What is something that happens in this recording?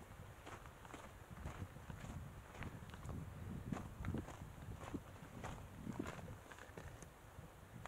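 Footsteps crunch steadily on a dirt and gravel trail.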